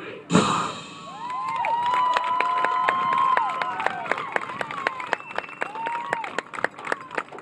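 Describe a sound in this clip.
A marching band's brass plays loud held chords outdoors.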